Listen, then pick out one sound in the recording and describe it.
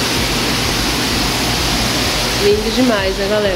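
Water trickles and splashes over rocks.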